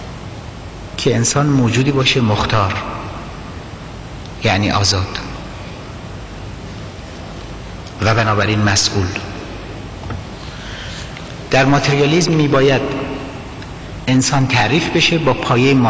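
A middle-aged man speaks forcefully into a microphone in bursts, with pauses in between, in a reverberant hall.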